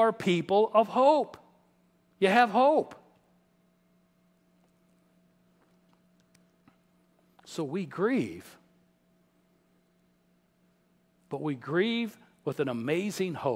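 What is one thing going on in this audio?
A middle-aged man speaks with animation through a microphone, with long pauses.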